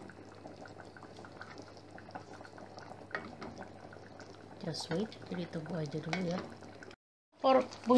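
A wooden spoon stirs a thick stew and scrapes softly against a metal pot.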